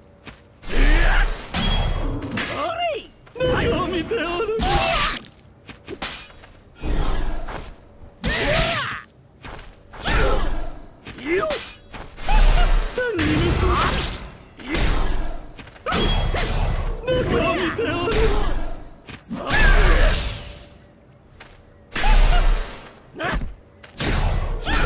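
Swords swish and clash in bursts throughout a fast fight.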